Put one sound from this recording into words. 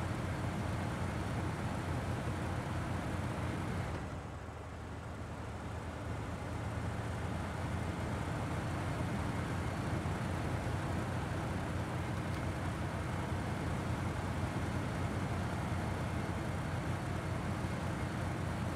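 A heavy truck engine rumbles steadily as it drives.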